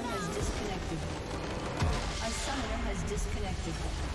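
A video game crystal structure explodes with a burst.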